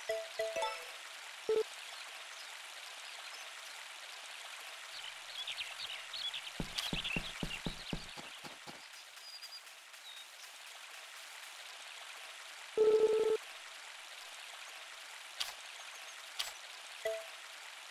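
A stream of water flows and splashes steadily.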